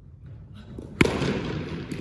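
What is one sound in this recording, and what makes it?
A cricket bat sharply strikes a ball, ringing out in a large echoing hall.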